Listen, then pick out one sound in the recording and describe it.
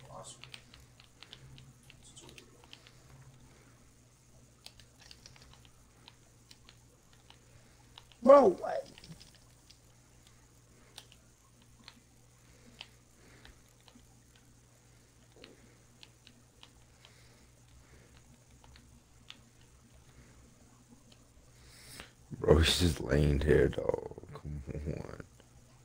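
Soft menu clicks tick now and then as selections change.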